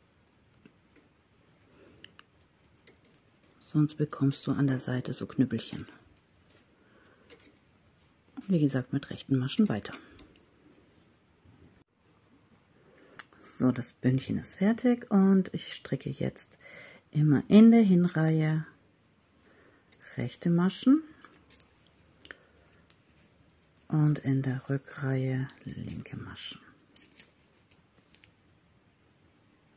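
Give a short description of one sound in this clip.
Metal knitting needles click softly together as yarn is knitted.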